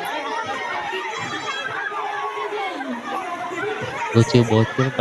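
A crowd of people chatter.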